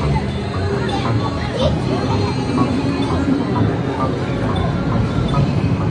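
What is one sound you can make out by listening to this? A boy slaps buttons on an arcade game rapidly.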